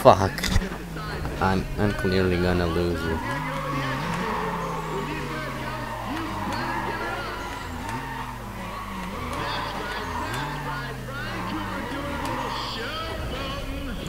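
A car engine revs repeatedly, rising and falling.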